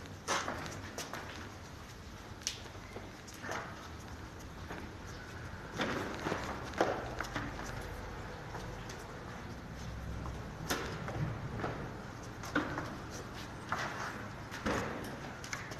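Footsteps tread down stone stairs.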